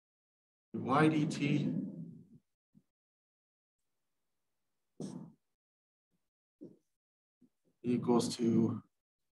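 A woman speaks calmly, lecturing nearby.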